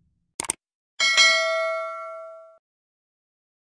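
A small bell chimes and rings out.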